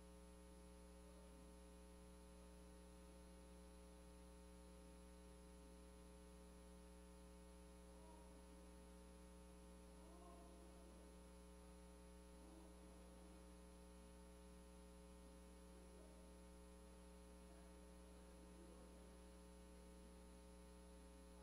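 A man prays aloud, faint and distant, through loudspeakers in a large room.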